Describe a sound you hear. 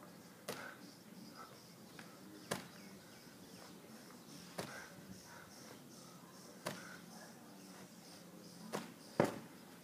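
A heavy ball thuds against a wooden beam at a steady pace.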